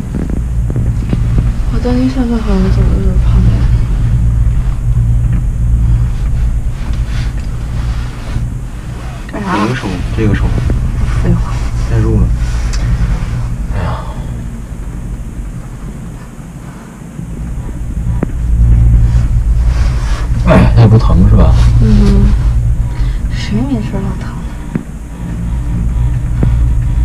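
A cable car hums and rumbles low as it glides along its cable.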